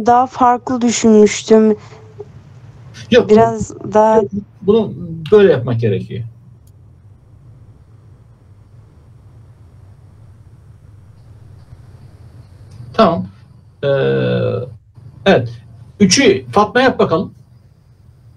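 A man speaks calmly over an online call, explaining.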